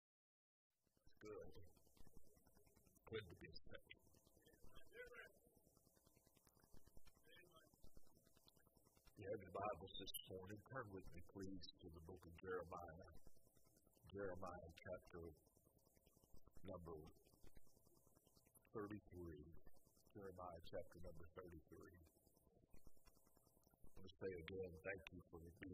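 An older man speaks slowly and steadily through a microphone in a room with slight echo.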